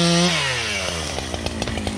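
A chainsaw engine winds down from a high rev to idle.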